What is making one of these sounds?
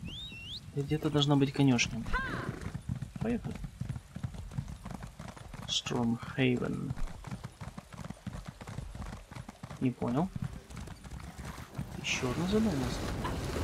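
A horse's hooves clop steadily on a path.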